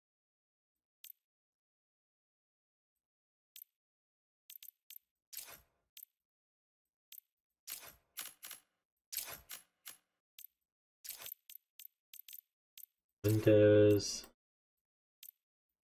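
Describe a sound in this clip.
Short electronic menu clicks tick again and again.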